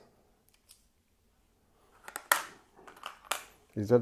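Small metal parts clink in a plastic box as a hand sorts through them.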